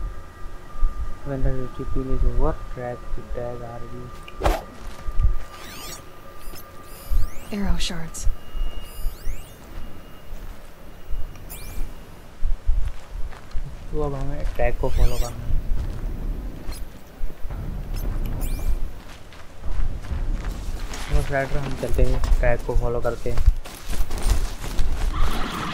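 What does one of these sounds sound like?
Footsteps crunch over rocks and grass.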